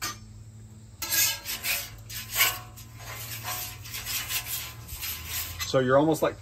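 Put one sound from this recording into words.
A metal spatula scrapes across a griddle.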